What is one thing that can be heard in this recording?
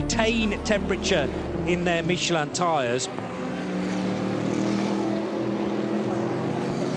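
Racing car engines roar loudly as the cars speed past.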